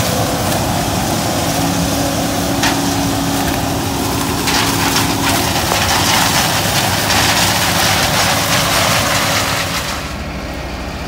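Dry corn stalks crackle and rustle loudly as a combine harvester cuts through them.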